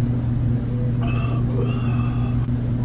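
A young man slurps soup from a cup.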